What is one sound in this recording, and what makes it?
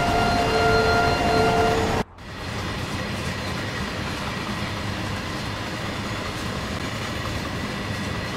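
A freight train rumbles steadily along the rails.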